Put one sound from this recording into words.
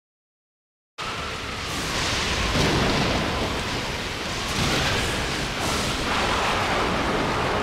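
Strong wind roars steadily.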